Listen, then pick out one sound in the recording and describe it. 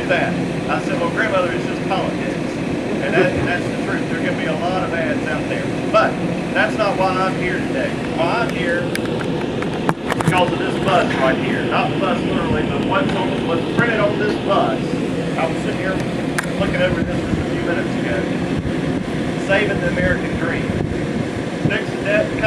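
A man speaks with animation through a microphone and loudspeakers outdoors.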